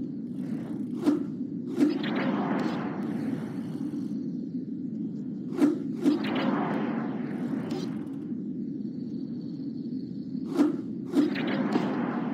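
A bicycle lands hard after a jump with a thud.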